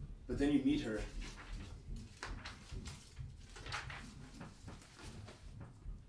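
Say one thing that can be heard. Paper pages rustle and flip.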